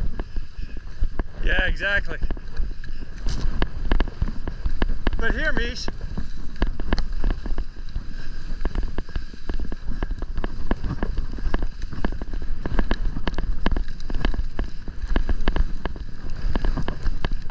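Skis scrape and crunch over packed snow.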